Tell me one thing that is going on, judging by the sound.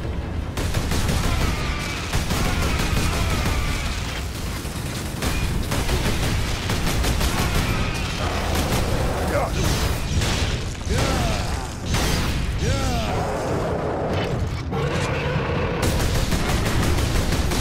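Flames roar from explosions.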